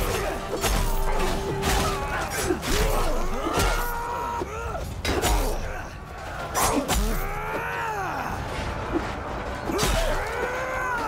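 Swords clash and clang in a close fight.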